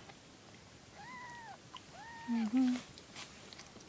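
Kittens mew softly a few times, close by.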